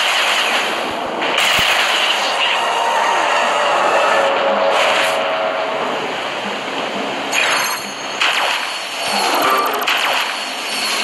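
Electronic magical whooshing and crackling effects swirl loudly.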